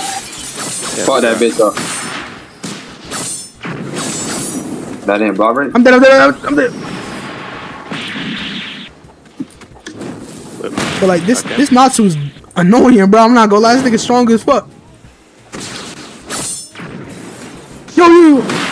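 Bursts and whooshes of magic attacks crackle loudly.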